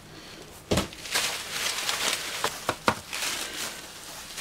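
Bubble wrap crinkles and rustles as it is unwrapped.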